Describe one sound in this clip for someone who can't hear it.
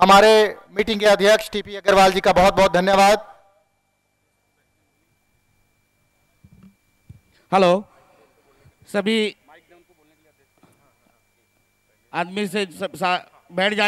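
A woman announces loudly over a loudspeaker.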